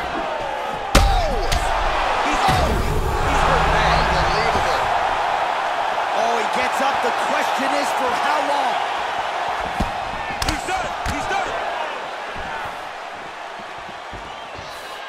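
A crowd roars and cheers loudly.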